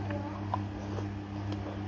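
A woman slurps noodles close by.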